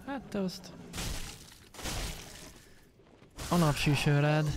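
A sword slashes and strikes in quick blows.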